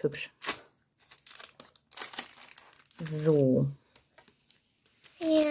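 Plastic sheets rustle and crinkle as they are handled.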